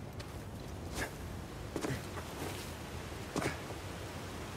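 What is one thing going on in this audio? Footsteps thud on rock.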